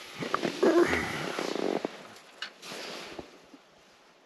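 Fabric and a bag rustle close by.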